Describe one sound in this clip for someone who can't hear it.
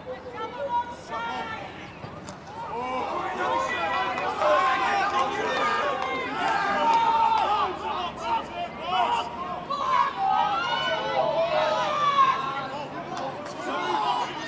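Young men shout and call to each other outdoors, close and further off.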